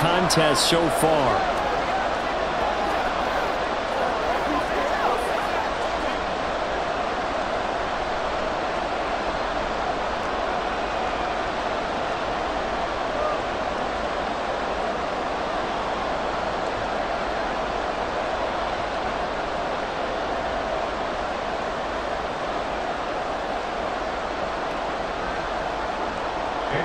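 A large stadium crowd roars and cheers steadily throughout.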